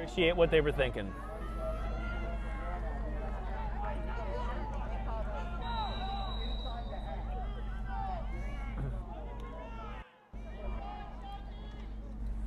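A crowd of spectators chatters outdoors in the background.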